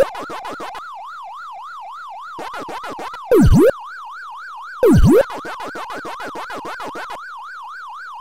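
Quick electronic chomping blips play in a steady rhythm.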